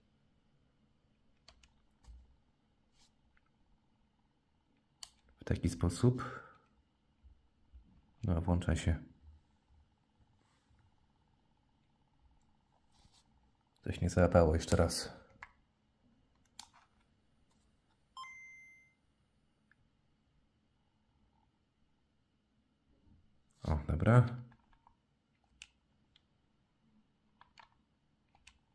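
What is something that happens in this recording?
Buttons on a handheld game console click softly under a finger.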